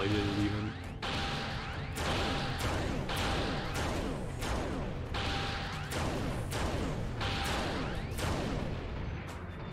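Electric blasts crackle and zap in quick bursts.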